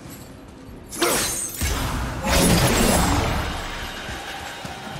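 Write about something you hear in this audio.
A burst of magical energy whooshes and roars.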